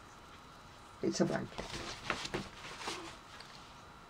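Magazine pages rustle as they are flipped.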